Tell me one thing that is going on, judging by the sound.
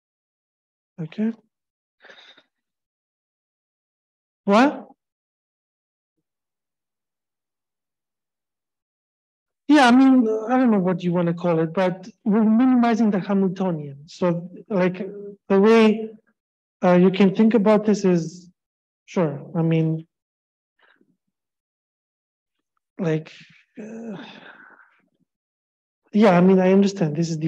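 A man lectures calmly through a microphone, with pauses.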